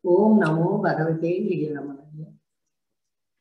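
An elderly woman speaks with animation through a microphone on an online call.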